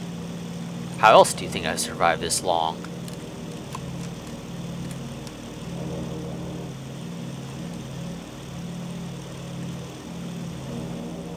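Twin propeller engines drone steadily.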